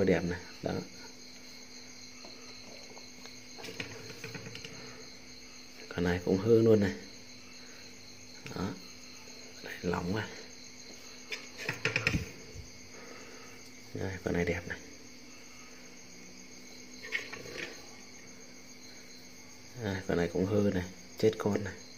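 Hands rustle and knock against a small cardboard box close by.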